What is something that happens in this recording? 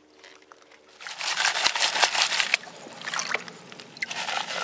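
Water sloshes and splashes in a metal pan being swirled.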